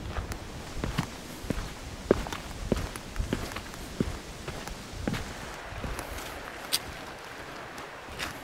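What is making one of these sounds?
Trekking poles tap on the ground.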